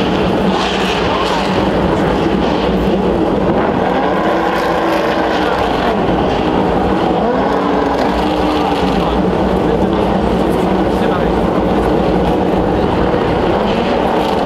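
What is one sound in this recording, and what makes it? Racing cars roar loudly past on a track, engines whining up and down in pitch.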